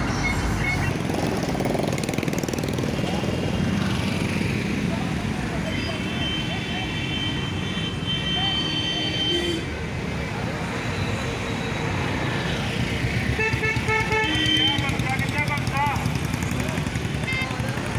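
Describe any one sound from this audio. Men talk among themselves outdoors.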